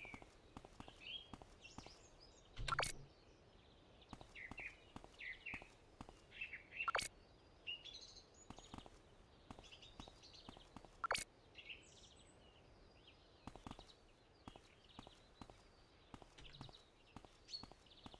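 Footsteps tap steadily on asphalt.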